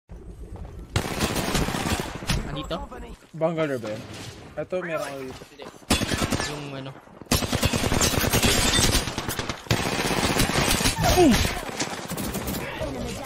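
Rapid gunfire crackles and bangs.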